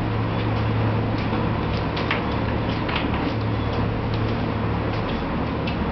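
Clothes rustle and knock close by as a person leans in.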